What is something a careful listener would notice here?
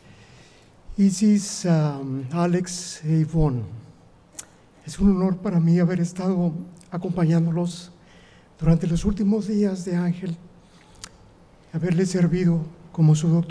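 A middle-aged man speaks slowly and with emotion through a microphone in a large echoing hall.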